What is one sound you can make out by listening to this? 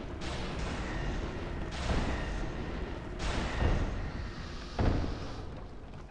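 A magic spell whooshes and crackles.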